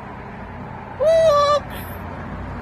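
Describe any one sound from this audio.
A cockatoo screeches.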